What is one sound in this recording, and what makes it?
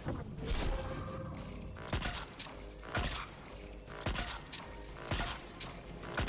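Rapid gunshots crack and echo.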